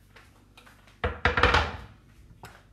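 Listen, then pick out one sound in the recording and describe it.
A wooden cutting board is set down on a stone counter with a heavy thud.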